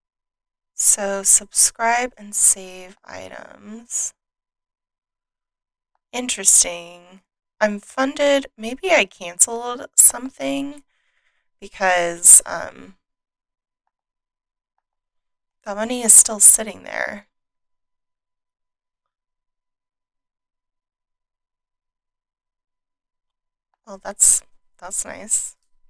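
A woman talks calmly and close to a microphone, in short bursts with pauses.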